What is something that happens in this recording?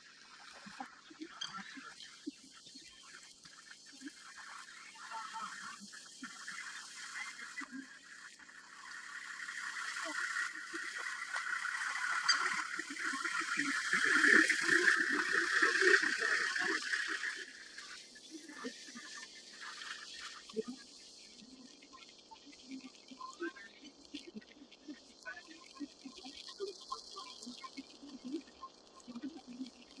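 A herd of wildebeest grunts and honks.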